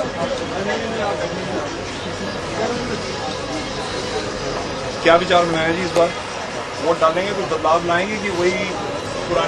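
A crowd of voices murmurs in the background.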